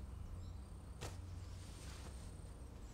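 Bamboo slips clack softly as they are handled.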